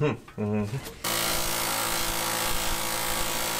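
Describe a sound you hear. A power tool whirs steadily against metal.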